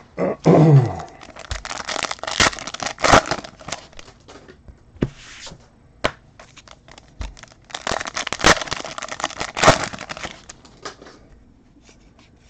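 Foil card wrappers crinkle and tear as hands open packs.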